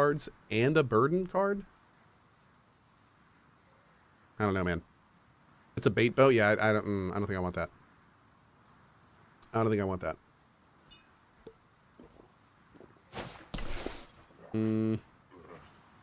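A man talks calmly and thoughtfully into a close microphone, in short bursts with pauses.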